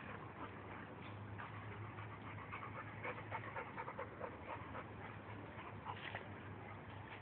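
A dog barks nearby.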